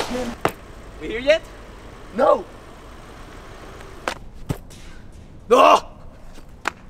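A young man grunts and exclaims outdoors.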